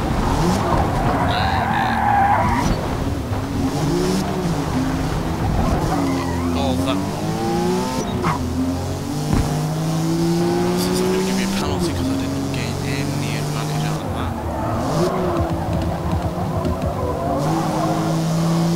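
Car tyres screech while sliding through corners.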